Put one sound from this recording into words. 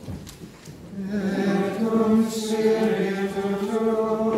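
A group of people sings together in reply.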